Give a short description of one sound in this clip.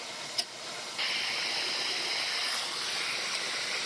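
A heat gun blows with a steady rushing hiss.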